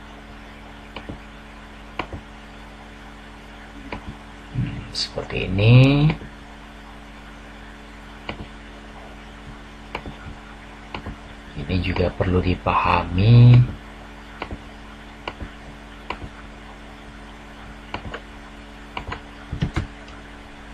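A computer mouse clicks a few times.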